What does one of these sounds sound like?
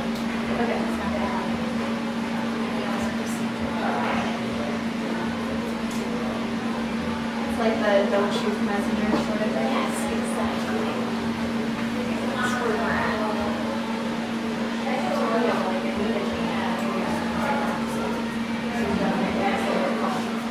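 Scissors snip through hair close by.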